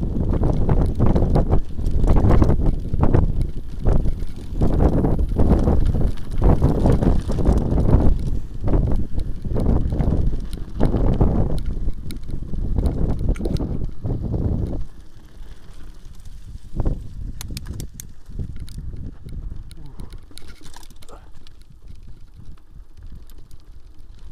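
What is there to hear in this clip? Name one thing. Bicycle tyres roll and rattle over rough ground.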